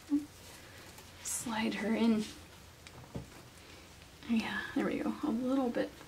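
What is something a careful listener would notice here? Soft fabric rustles as a blanket is wrapped.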